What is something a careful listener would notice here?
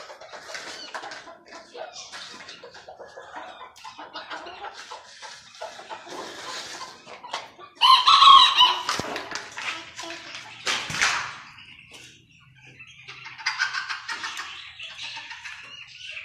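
Small birds chirp and twitter in cages nearby.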